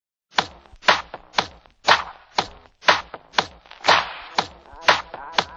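A young woman claps her hands in a steady rhythm.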